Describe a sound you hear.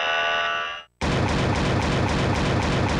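Fast, driving video game music starts up loudly.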